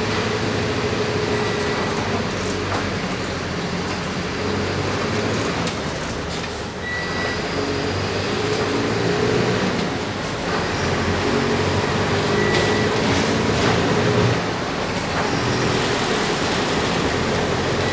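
A bus body rattles and creaks over the road.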